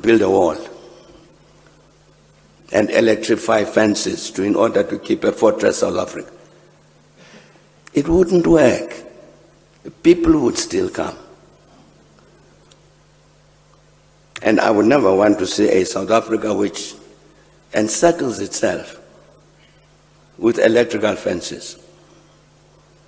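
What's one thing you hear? An elderly man speaks slowly and deliberately through a microphone, pausing often between phrases.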